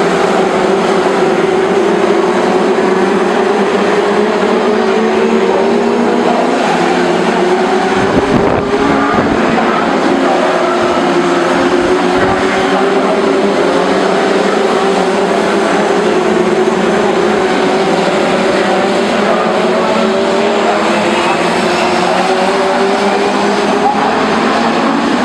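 A pack of F2 stock car engines roars as the cars race past at full throttle outdoors.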